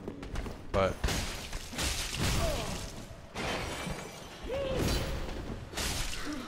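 Blades slash and strike in a fight.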